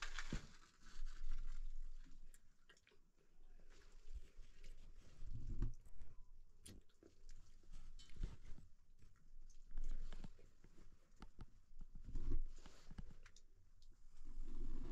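Metal clinks against a stove.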